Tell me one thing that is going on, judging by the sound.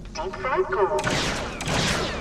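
A blaster fires a shot.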